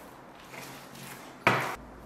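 A paint roller rolls wetly in a metal tray.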